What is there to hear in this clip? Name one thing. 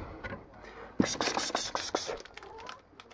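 A plastic food packet crinkles.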